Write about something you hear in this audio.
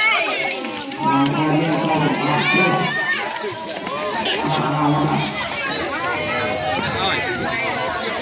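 Water splashes as it is poured over people.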